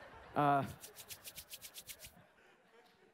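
A man claps his hands rapidly.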